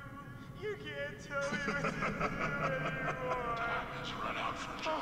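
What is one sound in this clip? A man laughs wildly.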